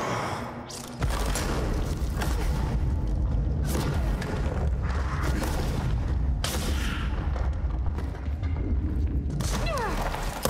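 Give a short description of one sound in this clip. Rocks crash and tumble with deep rumbling booms.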